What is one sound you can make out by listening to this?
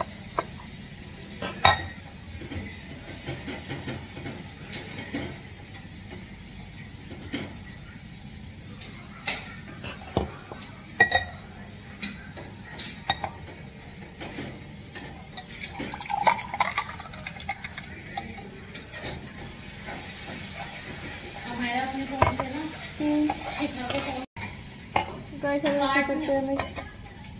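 Metal cups clink and clatter against each other.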